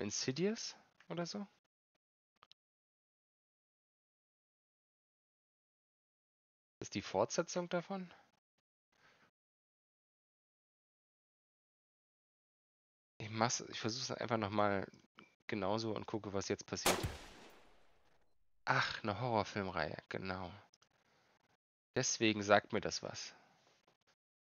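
A man talks calmly into a close microphone, in bursts with pauses.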